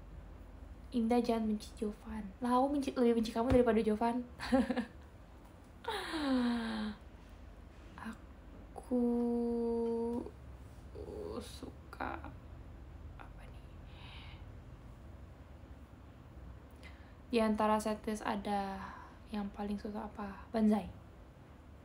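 A young woman speaks with animation close to a microphone, in short bursts with pauses.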